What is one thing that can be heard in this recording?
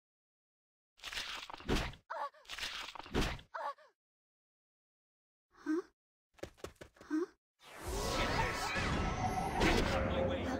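Video game spell effects burst and chime.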